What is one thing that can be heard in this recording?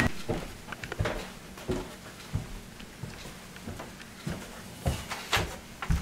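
Footsteps thump down wooden stairs indoors.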